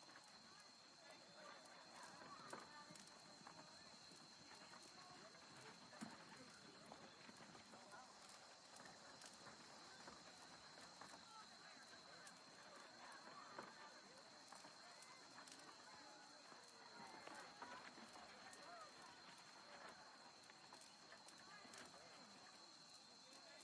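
A campfire crackles and pops softly.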